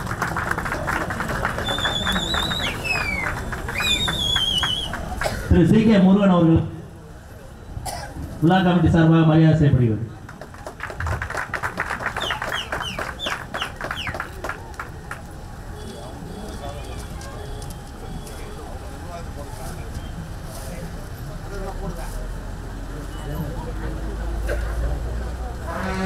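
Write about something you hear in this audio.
Men talk and murmur nearby among a crowd outdoors.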